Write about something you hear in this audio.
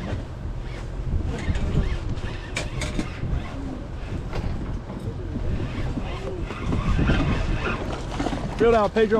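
Choppy water sloshes against a boat's hull.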